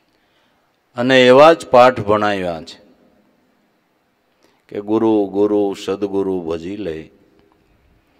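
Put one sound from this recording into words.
An elderly man chants in a slow, drawn-out voice through a microphone.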